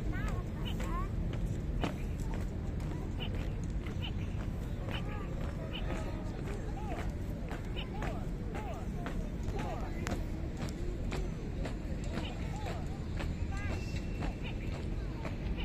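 Boots march in step on pavement.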